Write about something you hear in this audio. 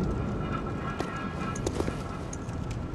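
Footsteps scrape on stone.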